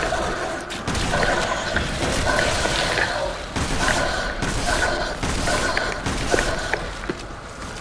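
A shotgun fires repeatedly with a booming echo.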